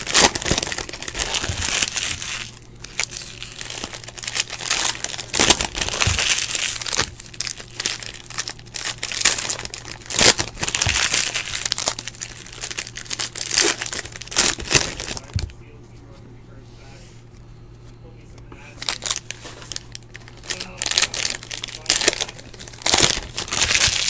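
Foil packs crinkle and rustle in someone's hands.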